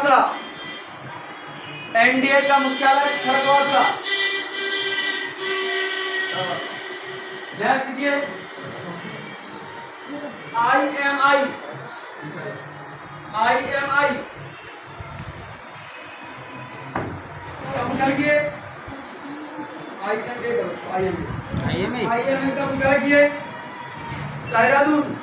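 A man speaks loudly close by.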